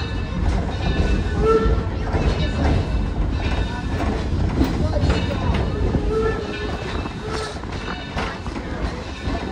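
An open tram rumbles and rattles along steadily.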